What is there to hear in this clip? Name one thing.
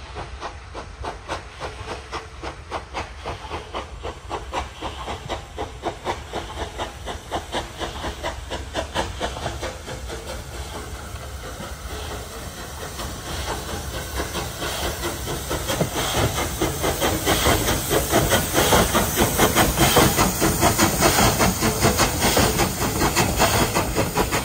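A steam locomotive chuffs in rapid, rhythmic bursts, growing louder as it approaches.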